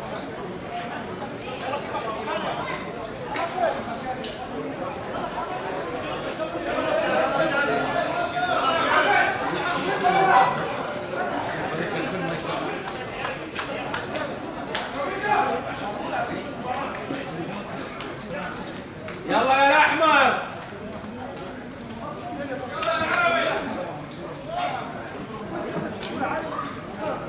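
Several men talk and call out at a distance outdoors.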